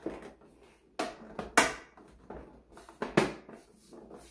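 Hard plastic clicks and knocks as it is handled.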